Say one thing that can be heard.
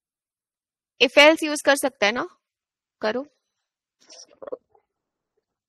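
A young woman speaks briefly and calmly through a computer microphone in an online call.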